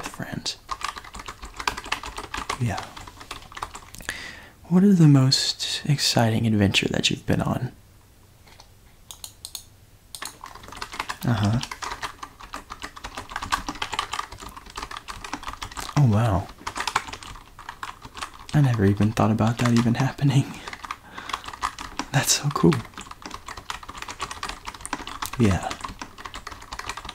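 Fingers type on a computer keyboard.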